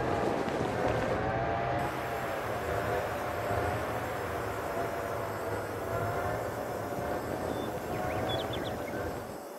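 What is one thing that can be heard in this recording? A truck engine hums steadily as the truck drives along.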